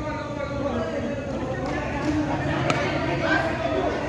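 A cricket ball is struck by a bat with a sharp crack.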